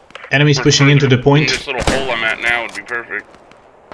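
A rifle bolt is worked back, ejecting a spent casing with a metallic clack.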